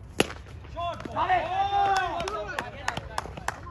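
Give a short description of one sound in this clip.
Men shout and cheer after the hit.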